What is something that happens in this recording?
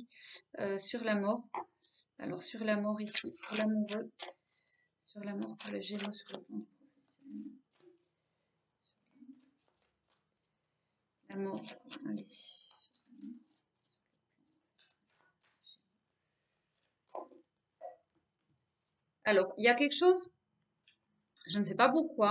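A woman speaks calmly and close to a microphone, in pauses.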